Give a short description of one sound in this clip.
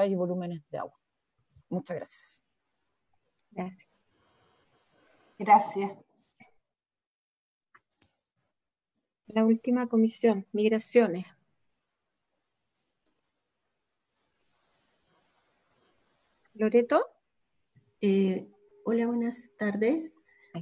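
Several women speak in turn over an online call, in short calm phrases with pauses.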